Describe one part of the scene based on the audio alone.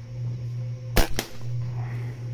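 A rifle fires a single sharp shot close by.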